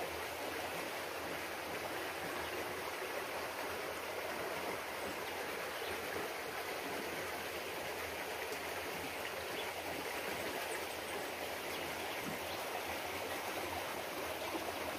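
A shallow stream gurgles and trickles over stones.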